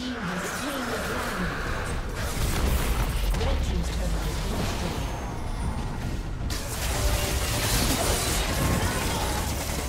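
Game spells and attacks crackle and thump in a fast fight.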